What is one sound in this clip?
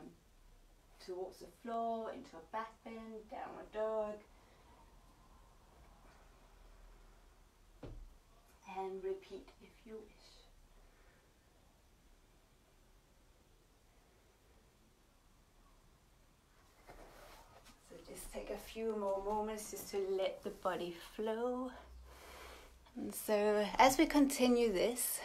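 A woman speaks calmly and instructively, close by.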